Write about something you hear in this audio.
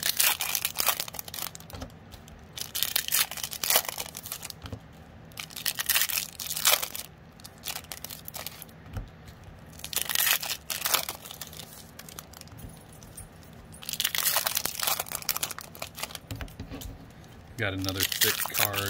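Foil card packs crinkle and rustle as a hand handles them.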